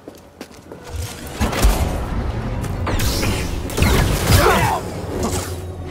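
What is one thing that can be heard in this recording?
A lightsaber hums and clashes with loud crackling hits.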